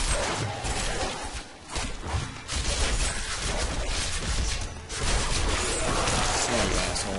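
Fighting sound effects clash and crackle in a video game.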